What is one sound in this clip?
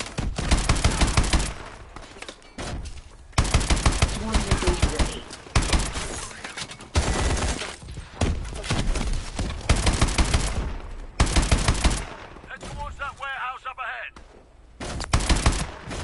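Automatic gunfire rattles in rapid bursts, loud and close.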